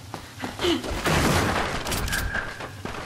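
A wooden crate smashes apart with a loud crash.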